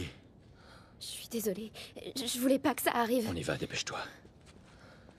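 A girl speaks tearfully, close by.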